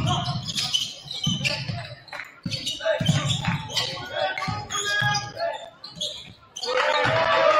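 A ball bounces on a hard court in a large echoing gym.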